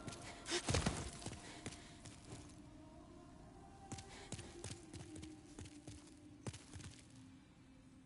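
Armoured footsteps clank on a stone floor.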